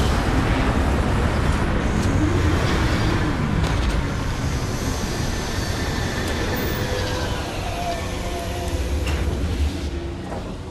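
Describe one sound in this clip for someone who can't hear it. A spacecraft's engines roar as the craft sets down, then fade away.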